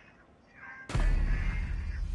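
A loud gunshot bangs close by.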